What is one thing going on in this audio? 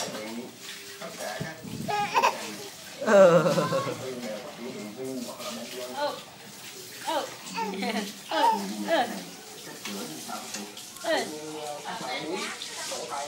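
A baby babbles and coos close by.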